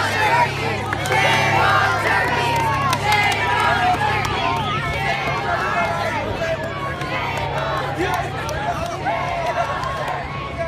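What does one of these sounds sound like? A crowd of children chatter and shout excitedly.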